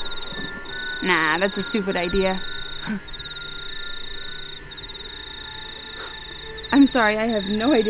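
A young woman speaks in a raspy, menacing voice close by.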